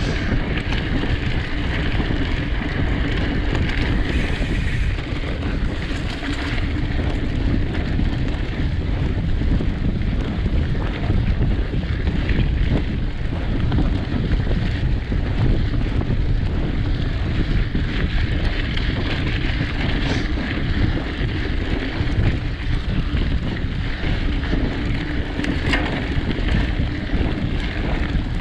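Bicycle tyres crunch and rumble over a dirt track.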